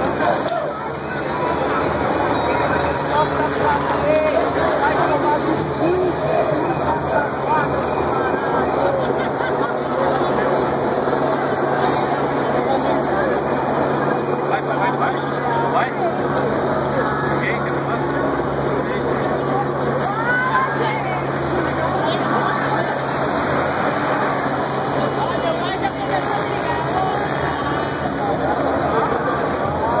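A large crowd of marching protesters talks and chants outdoors.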